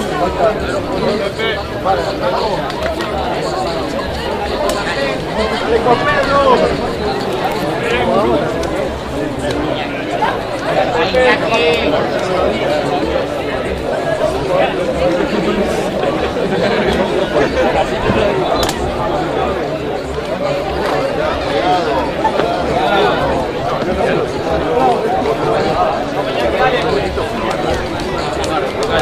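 Young men shout and call to each other outdoors on an open field.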